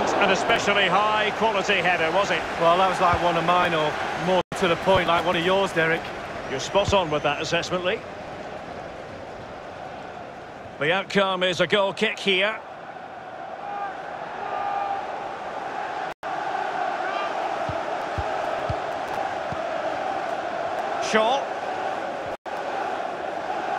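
A large stadium crowd murmurs and cheers steadily.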